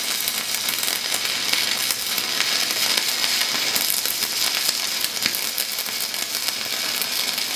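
A welding arc crackles and sizzles steadily up close.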